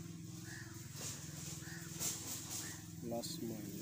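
Small plastic parts click in a man's hands.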